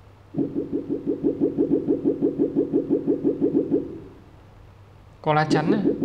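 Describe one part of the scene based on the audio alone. A tablet game plays electronic sound effects.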